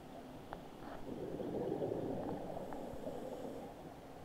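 Air bubbles gurgle and rumble underwater.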